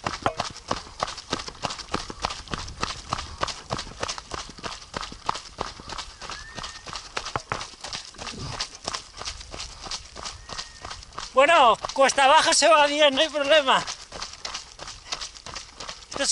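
Running footsteps thud rapidly on a dirt trail.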